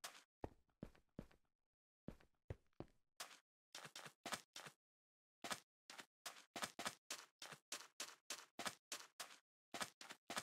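Footsteps crunch softly on sand at a quick, even pace.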